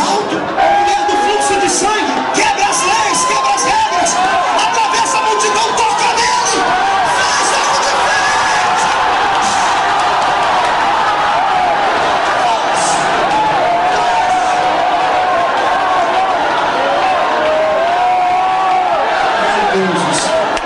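A man sings passionately into a microphone over a loudspeaker.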